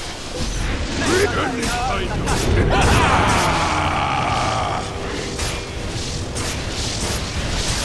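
Magic spells crackle and burst as game characters fight.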